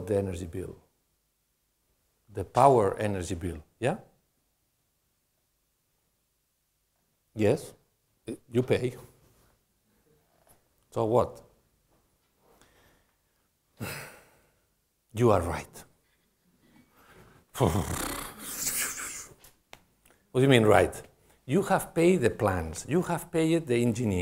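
A man speaks calmly into a microphone, pausing often.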